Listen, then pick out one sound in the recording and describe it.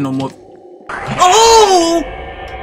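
A young man shouts in fright.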